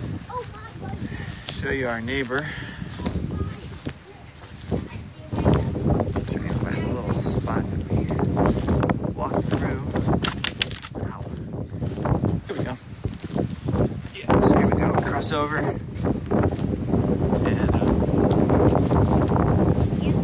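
Footsteps crunch through dry grass and twigs.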